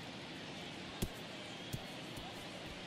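A ball thuds as it bounces on grass.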